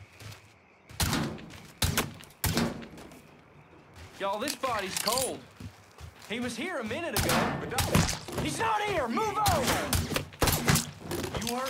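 Pistol shots ring out, loud and sharp, in short bursts.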